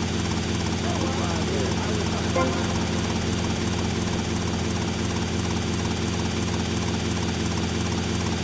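A helicopter's rotor whirs and its engine drones steadily.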